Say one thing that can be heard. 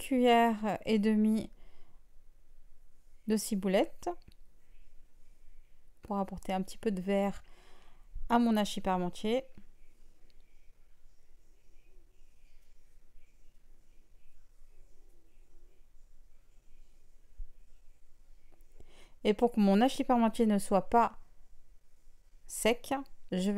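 A woman speaks calmly close to a microphone, in short bursts.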